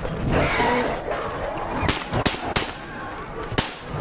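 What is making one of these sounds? An automatic rifle fires.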